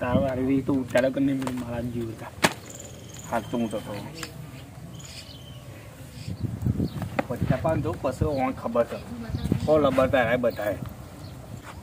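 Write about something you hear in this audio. A young man talks nearby with animation.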